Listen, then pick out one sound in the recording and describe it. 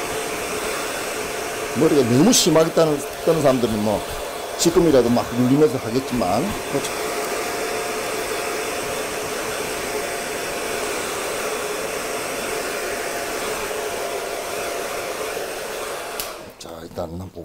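A hair dryer blows steadily.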